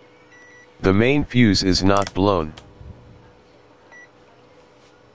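A multimeter gives a short, high beep.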